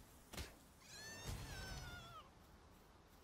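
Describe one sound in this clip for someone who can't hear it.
A creature lets out a high, wavering cry that falls in pitch.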